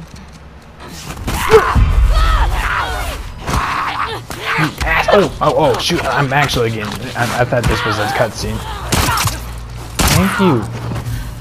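Heavy blows and thuds land in a struggle.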